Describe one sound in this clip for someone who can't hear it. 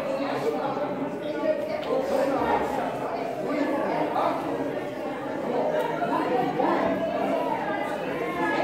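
A crowd of people pray and call out loudly together in a large echoing hall.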